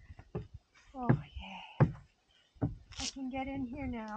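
Footsteps thump on wooden steps.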